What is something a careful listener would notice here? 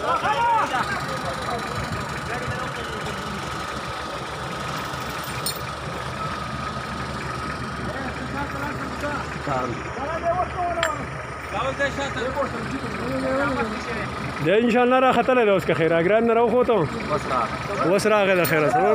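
Men talk loudly close by, outdoors.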